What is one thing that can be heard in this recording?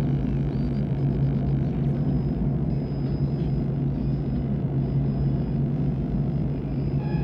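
A vehicle engine drones steadily while driving through a tunnel.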